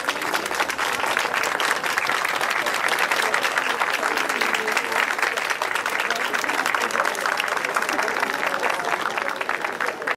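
A crowd outdoors cheers and shouts.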